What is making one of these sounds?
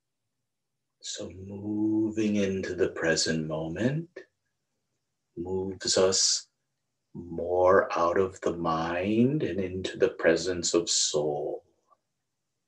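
A middle-aged man speaks calmly and close up, heard through a microphone on an online call.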